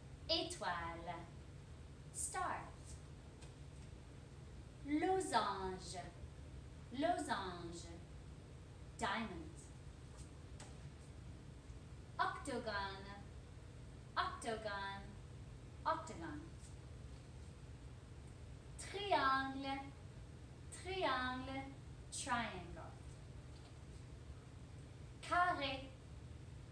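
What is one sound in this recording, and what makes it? A young woman speaks clearly and slowly into a close microphone, in short phrases with pauses.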